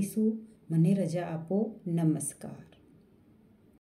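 A woman speaks calmly, close to a microphone.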